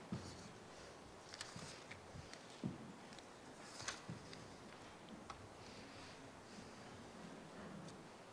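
Papers rustle nearby.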